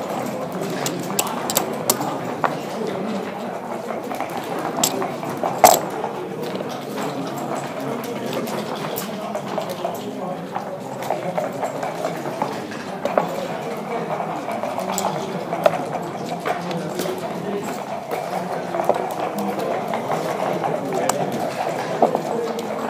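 Plastic game pieces click and clack against a wooden board.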